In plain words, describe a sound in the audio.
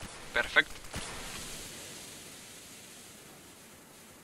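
A smoke grenade bursts with a loud hiss that slowly fades.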